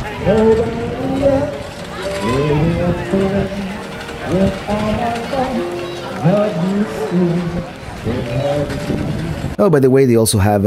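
A violin plays a lively tune outdoors.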